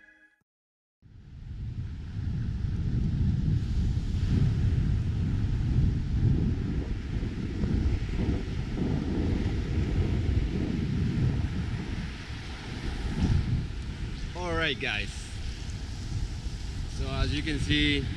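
Wind blusters loudly across the microphone outdoors.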